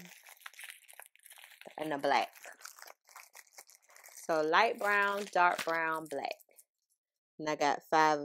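Plastic packaging crinkles and rustles in a woman's hands.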